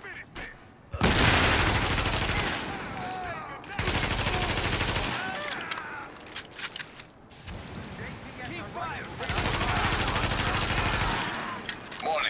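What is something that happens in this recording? A rifle fires loud rapid bursts of gunshots.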